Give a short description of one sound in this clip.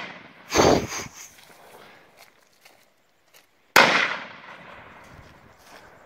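Loud blasts boom outdoors and echo away through the trees.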